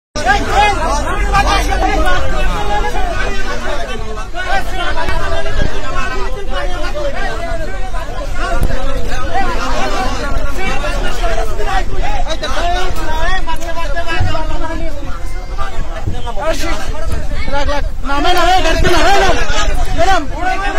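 A crowd of men shout and argue loudly and close by.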